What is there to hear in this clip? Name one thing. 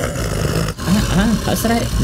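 A jaguar snarls loudly.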